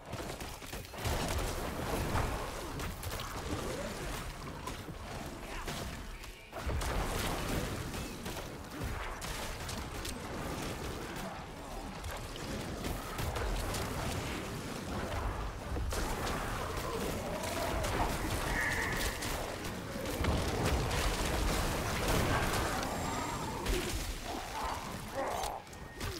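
Magic blasts and weapon hits crash and thump again and again in a fight.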